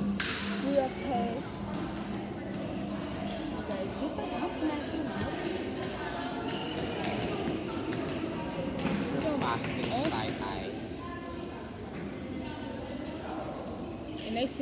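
A young girl talks casually close by.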